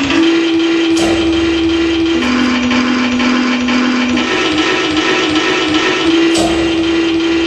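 Sharp electronic clicks and crackles cut in now and then.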